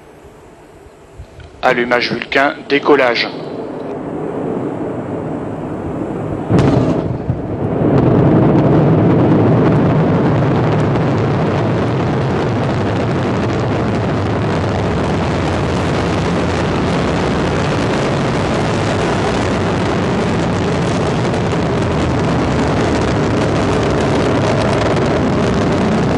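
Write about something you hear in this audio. A rocket engine roars loudly and steadily as it lifts off.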